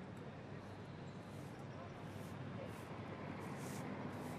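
Footsteps scuff slowly on pavement.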